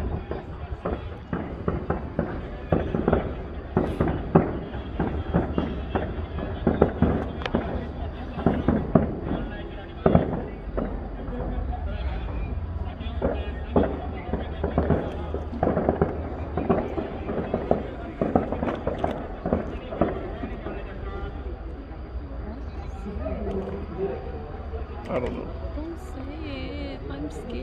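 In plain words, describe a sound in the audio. Fireworks boom and crackle in rapid bursts, outdoors.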